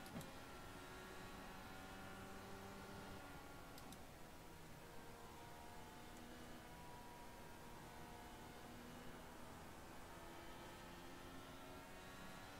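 A racing car engine whines at high revs, dropping in pitch on gear changes.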